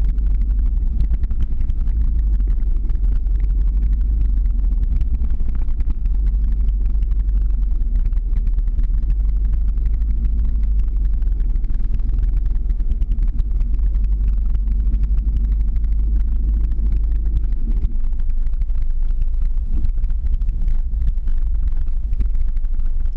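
Wind rushes loudly and steadily past the microphone outdoors.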